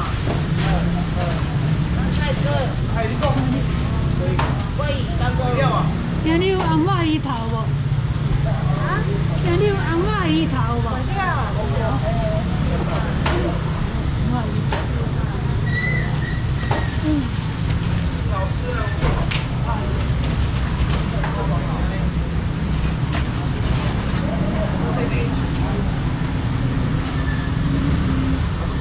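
A busy crowd murmurs and chatters all around, outdoors.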